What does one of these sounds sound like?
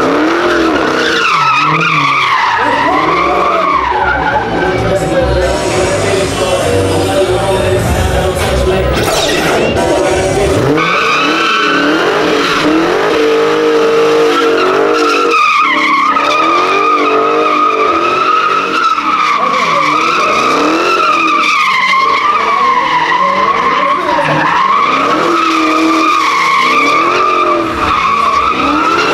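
Tyres screech steadily as a car spins on pavement.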